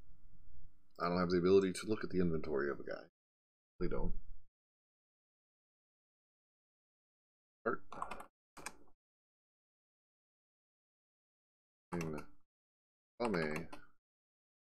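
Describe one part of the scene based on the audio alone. A middle-aged man speaks calmly and close to a microphone, in short bursts.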